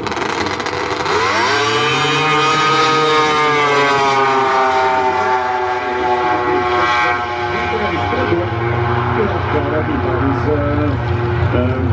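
Snowmobile engines roar to full throttle, rising sharply in pitch as the sleds race away.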